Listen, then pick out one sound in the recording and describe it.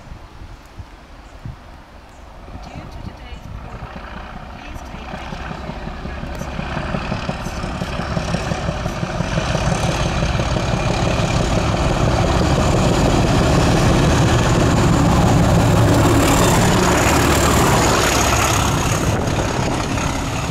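A diesel locomotive engine rumbles as it approaches, growing steadily louder.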